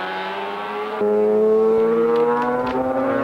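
A motorcycle engine whines louder as it approaches.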